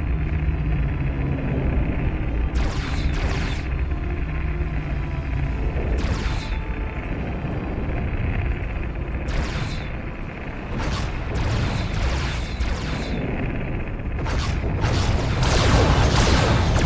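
A spaceship's engine hums low and steady.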